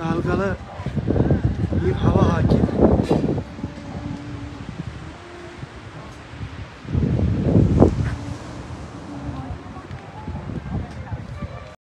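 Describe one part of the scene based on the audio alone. An elderly man speaks calmly, close to a phone's microphone.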